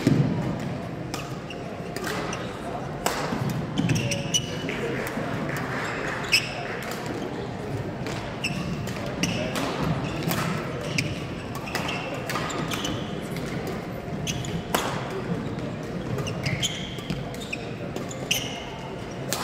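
Shoes squeak on a hard floor in a large echoing hall.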